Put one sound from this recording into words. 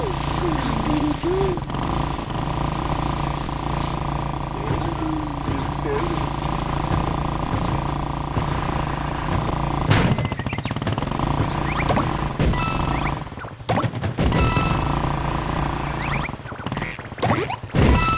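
Steady game music plays throughout.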